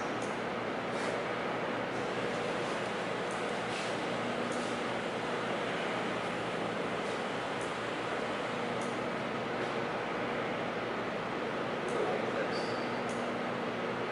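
A handheld tool clicks and taps against a hollow tube.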